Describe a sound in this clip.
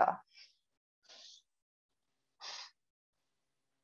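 A young woman breathes out slowly and audibly.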